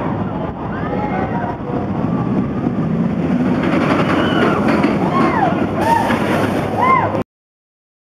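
Riders scream and shriek on a roller coaster.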